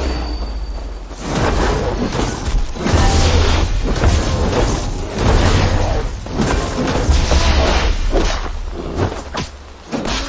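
A black bear growls and roars.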